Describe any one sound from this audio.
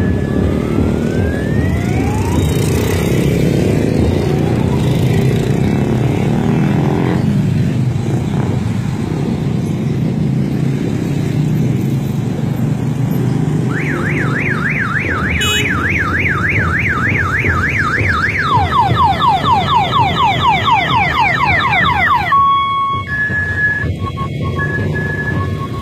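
Car and motorcycle engines rumble steadily as traffic passes close by.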